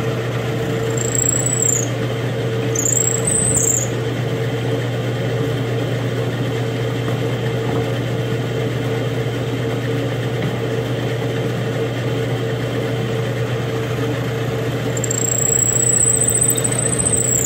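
A drill bit squeals as it bores into wood.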